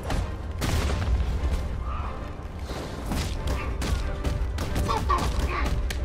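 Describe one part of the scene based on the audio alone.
Heavy punches land with loud thuds and smacks.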